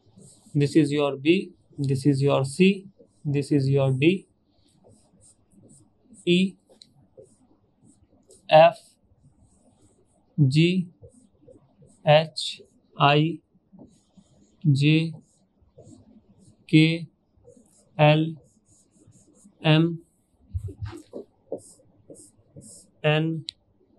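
A man speaks clearly and slowly into a close microphone, naming things one at a time with pauses between.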